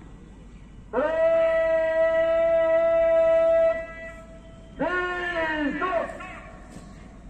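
A man shouts long, drawn-out drill commands outdoors.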